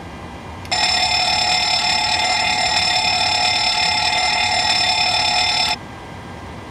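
A loud fire alarm bell rings steadily, then stops abruptly.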